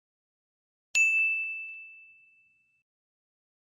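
A small bell chimes once and rings out.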